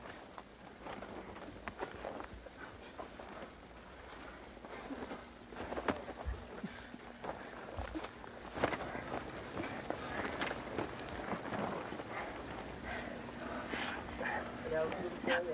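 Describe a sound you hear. Branches and roots rustle and crack as hands grab them.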